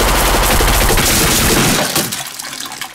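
Bullets clang into metal containers.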